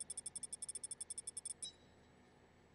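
A rapid electronic ticking counts up, then stops.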